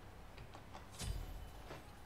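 A magic blast whooshes and crackles.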